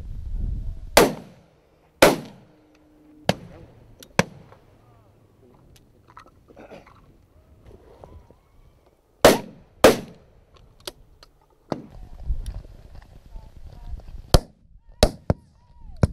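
A shotgun fires loud, sharp shots that echo briefly outdoors.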